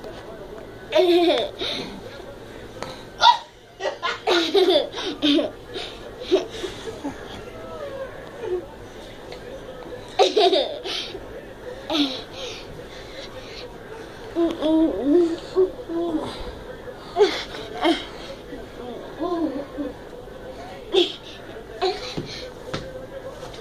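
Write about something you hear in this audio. A young girl laughs excitedly nearby.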